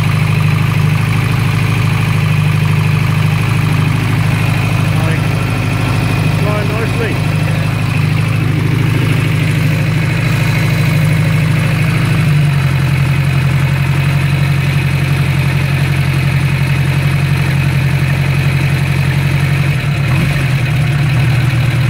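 A motorcycle engine idles close by with a steady low chugging, which drops to a lower, smoother rhythm partway through.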